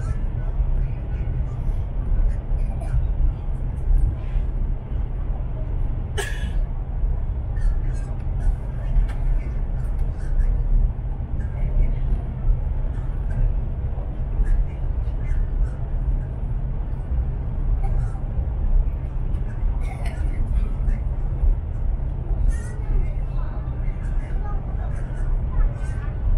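A train rumbles steadily along the track, heard from inside a carriage.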